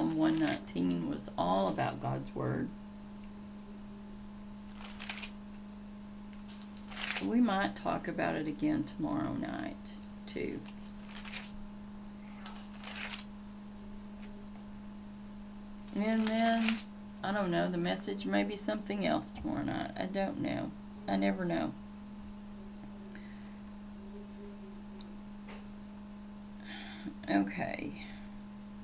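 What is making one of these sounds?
A middle-aged woman speaks calmly and close to a microphone, in short bursts with pauses.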